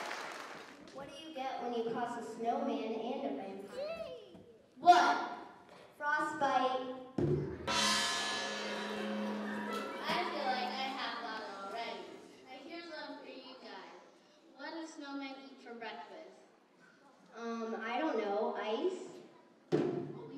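A young girl speaks into a microphone, heard through loudspeakers.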